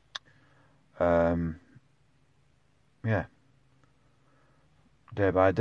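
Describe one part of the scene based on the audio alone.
A middle-aged man speaks calmly in short bursts close to a phone's microphone.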